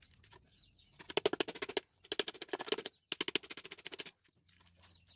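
A metal tool taps rapidly against a tin can.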